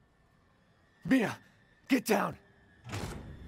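A young woman calls out urgently.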